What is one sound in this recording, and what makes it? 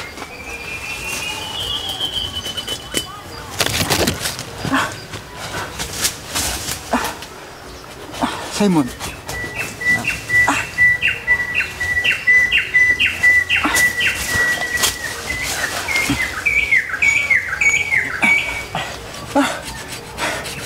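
Leaves rustle and twigs crackle as people move through dense undergrowth close by.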